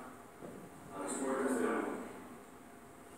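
A man speaks calmly, heard through loudspeakers in a room.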